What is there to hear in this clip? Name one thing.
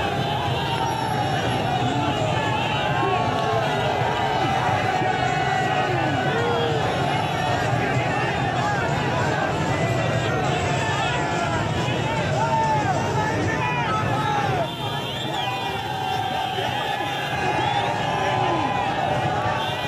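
Car horns honk among the crowd.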